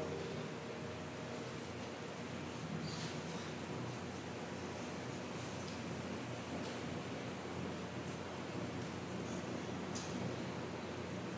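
A piano plays softly in a large echoing hall.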